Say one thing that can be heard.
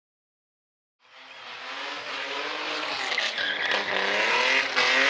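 A car engine revs loudly and rises in pitch.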